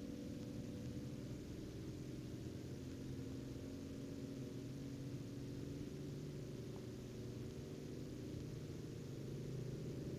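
Tyres roll on smooth asphalt.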